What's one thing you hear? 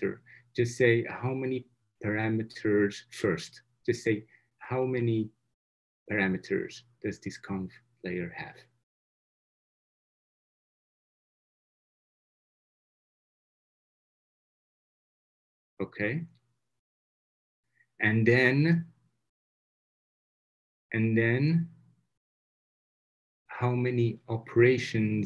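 A man speaks calmly through an online call, pausing at times.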